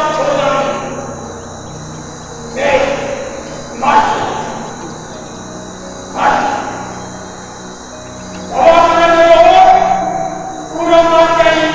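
An elderly man speaks slowly and forcefully through a microphone and loudspeakers, in a reverberant space.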